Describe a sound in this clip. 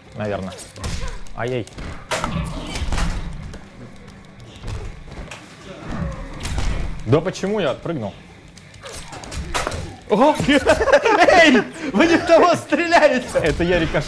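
Blows land with heavy thuds and cracks in a fight.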